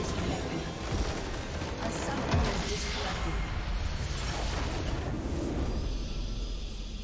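Spell effects crackle and blast in a fierce game battle.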